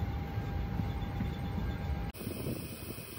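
An aircraft cabin hums with a steady low drone.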